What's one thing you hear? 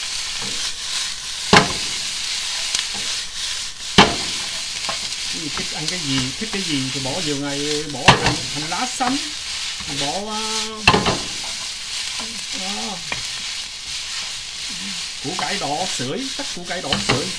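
A metal pan knocks and clatters as food is tossed.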